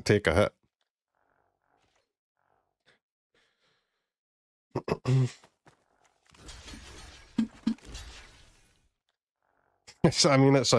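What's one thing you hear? A man talks in short bursts, close to a microphone.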